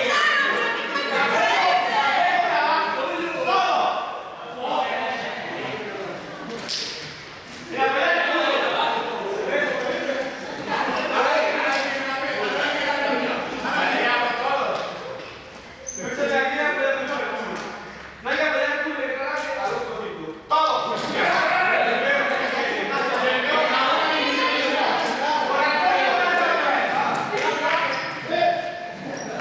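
A group of young people chatter and call out in a large echoing hall.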